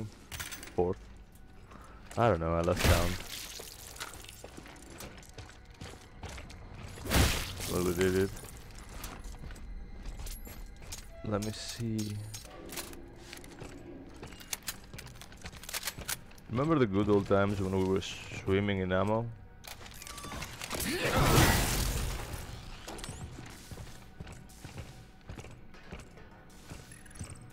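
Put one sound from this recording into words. Heavy boots clank on a metal floor.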